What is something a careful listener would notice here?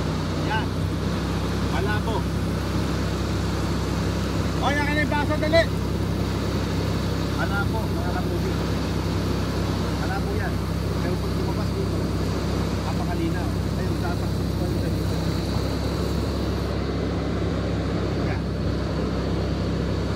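A pump hums steadily.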